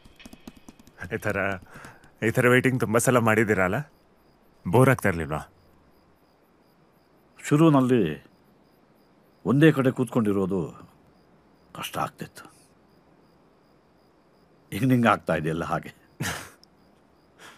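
A middle-aged man speaks urgently and tensely, close by.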